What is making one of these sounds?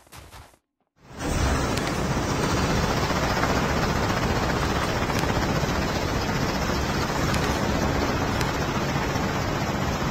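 A helicopter's rotors whir loudly and steadily.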